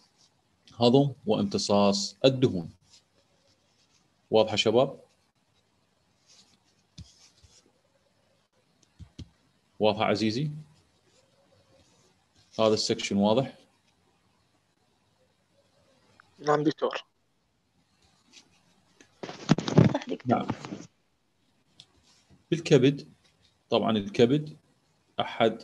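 A man speaks calmly in short phrases over an online call, with pauses between them.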